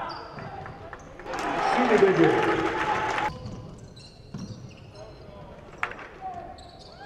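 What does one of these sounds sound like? Sneakers squeak on a hardwood court in an echoing hall.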